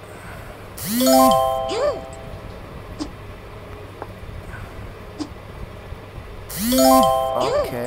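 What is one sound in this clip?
Bright chiming tones ring out as rows of blocks clear in a puzzle game.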